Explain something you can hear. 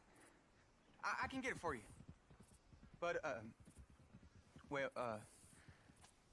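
A man pleads anxiously and rapidly.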